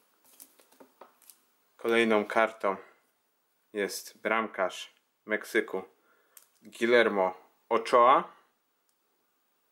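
A plastic card sleeve rustles softly in hands.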